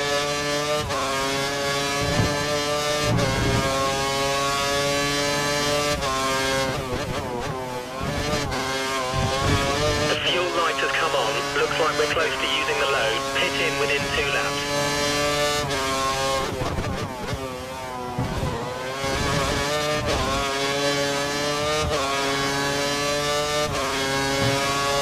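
A racing car engine screams at high revs, rising through the gears and dropping as it brakes for corners.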